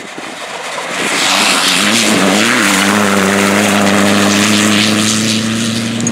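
A rally truck's engine roars as it speeds along a dirt track.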